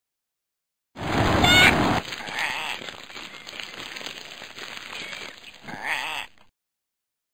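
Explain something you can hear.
Fire roars out in a loud burst.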